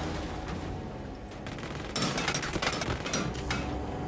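Fire crackles from a burning car.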